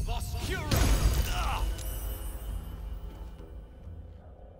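A magical blast crackles and booms, then rings away.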